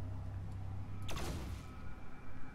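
An energy blast bursts with a sharp crackle.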